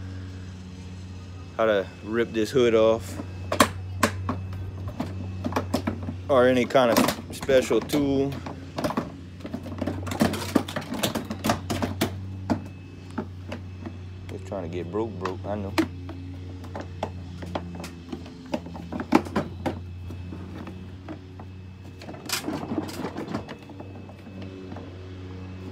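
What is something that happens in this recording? A hard plastic lid knocks and rattles as it is opened and closed.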